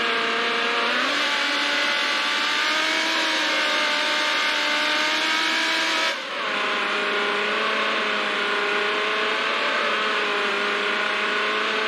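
A race car engine roars at high speed, its pitch dropping briefly as it shifts gear.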